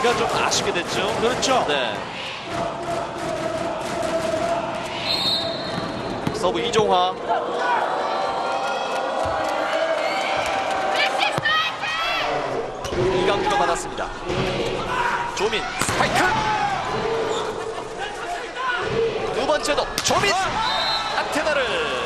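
A volleyball is struck hard with a sharp smack.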